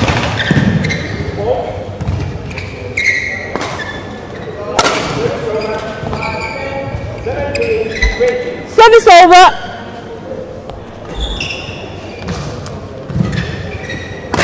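A shuttlecock is struck sharply back and forth by rackets in a large echoing hall.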